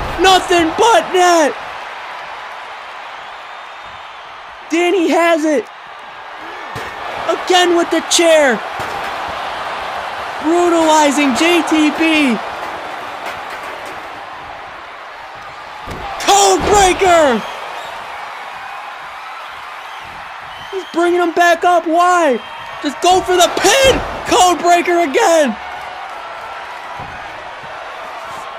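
A crowd cheers and roars in a large arena.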